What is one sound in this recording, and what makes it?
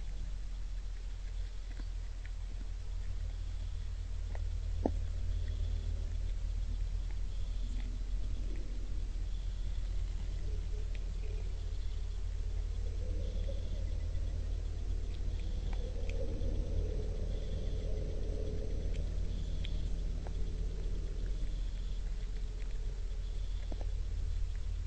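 A deer crunches food on the ground.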